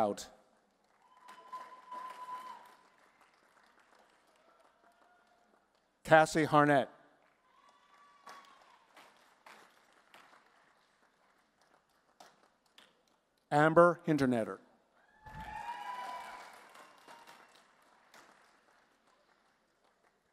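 An audience claps briefly.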